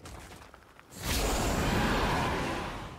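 A dragon roars loudly.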